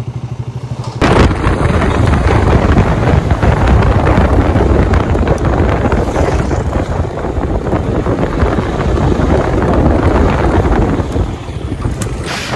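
A motorcycle engine roars while riding along a road.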